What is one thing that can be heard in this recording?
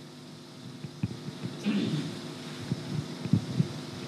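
A man's earpiece cable rustles and knocks against a nearby microphone.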